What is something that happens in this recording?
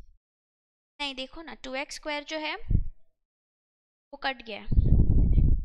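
A young woman speaks calmly and explains into a close microphone.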